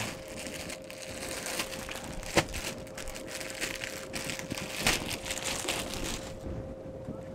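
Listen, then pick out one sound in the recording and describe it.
Plastic wrapping rustles and crinkles as clothes are handled.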